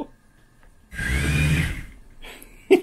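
A small toy car's electric motors whir as it drives off.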